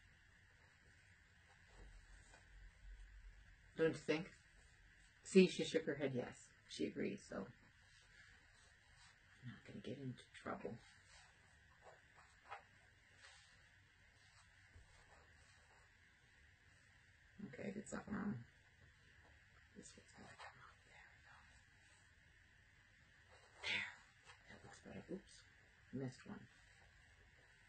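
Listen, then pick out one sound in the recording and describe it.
Fabric rustles softly as it is folded and smoothed.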